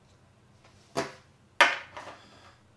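A plastic cap clicks onto a small tube.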